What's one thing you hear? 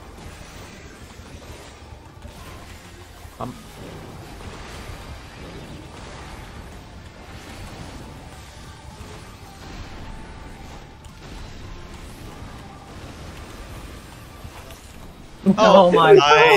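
Game battle effects whoosh and clash quietly.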